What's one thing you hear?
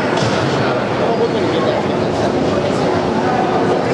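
Skate blades scrape across the ice.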